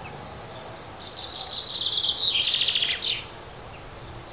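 A small bird sings a quick, bright twittering song close by.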